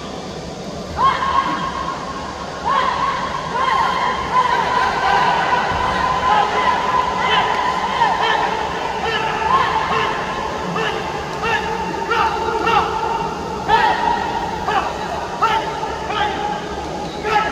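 A man shouts loudly at close range.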